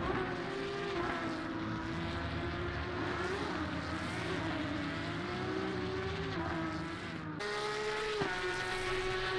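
A racing car engine rises and falls in pitch as it shifts gears.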